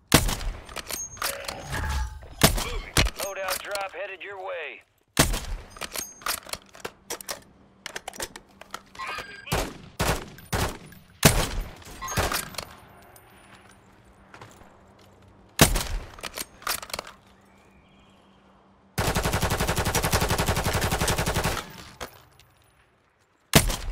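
Loud rifle shots crack and echo one at a time.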